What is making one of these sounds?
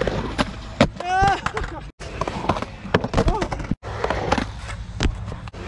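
A skateboard clacks sharply against concrete as a skater pops a trick.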